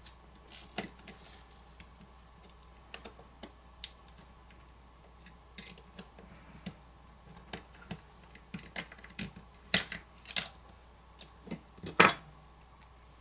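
A metal tool clicks and scrapes against small plastic parts.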